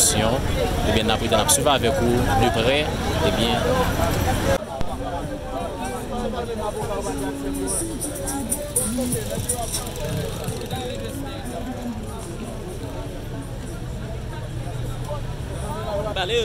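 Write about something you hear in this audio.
Several men talk over one another nearby outdoors.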